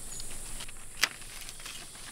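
Pruning shears snip through a stem.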